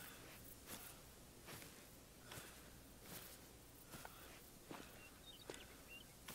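Footsteps crunch steadily through tall grass.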